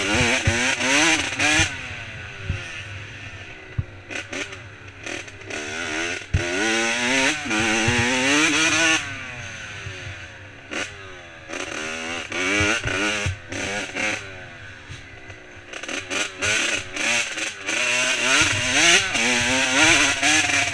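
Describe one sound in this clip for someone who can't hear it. Tyres thump and rattle over a rough dirt trail.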